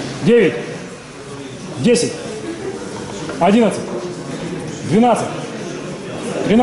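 A man shouts loud, rising and falling calls of encouragement over and over, in an echoing hall.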